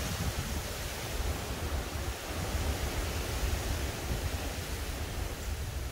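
Wind blows steadily outdoors, rustling leaves.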